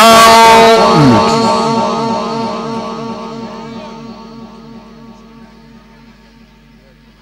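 A man's chanting voice rings out in a heavy echo and slowly fades away.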